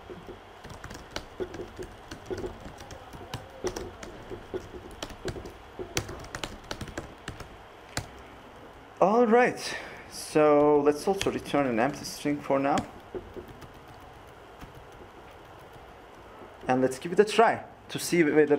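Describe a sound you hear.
Keyboard keys click quickly as someone types.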